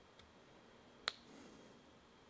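Small parts click faintly together in a man's hands.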